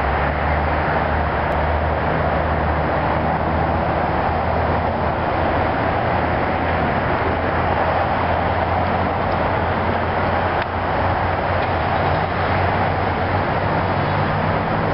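A train engine rumbles steadily as a train approaches from a distance.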